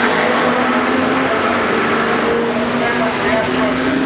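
Another racing car engine roars in the distance.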